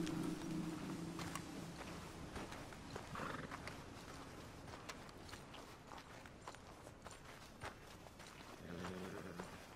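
Footsteps crunch slowly on a dirt road.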